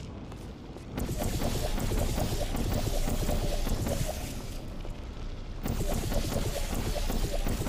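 Thick liquid gushes down and splatters loudly.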